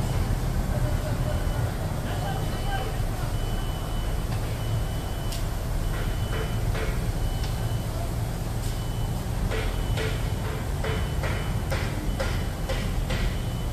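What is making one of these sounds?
Heavy machinery rumbles low and steadily nearby.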